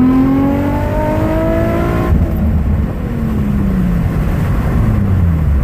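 A car engine revs hard, climbing steadily in pitch as it accelerates.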